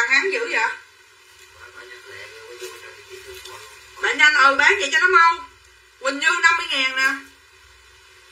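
A middle-aged woman talks close by in short bursts.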